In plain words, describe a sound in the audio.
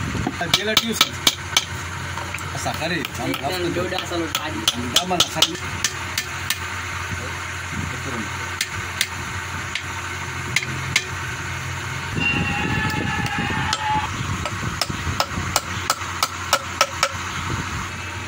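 A hammer taps sharply on wood in quick bursts.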